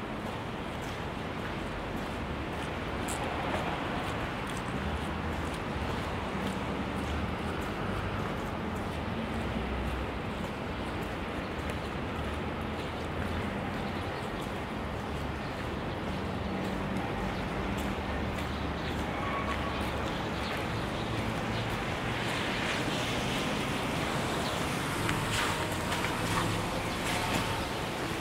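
Footsteps crunch and scrape on a wet, slushy street.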